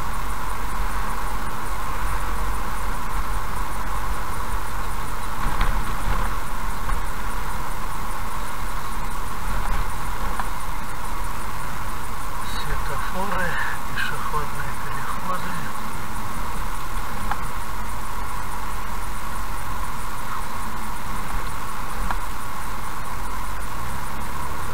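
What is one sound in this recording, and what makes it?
A car engine hums steadily with tyres rolling on the road.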